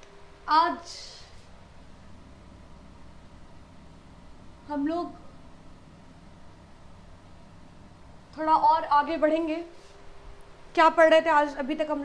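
A young woman speaks calmly and clearly, close by, in short phrases.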